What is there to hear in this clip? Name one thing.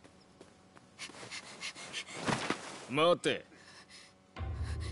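A young woman pleads in a tearful voice.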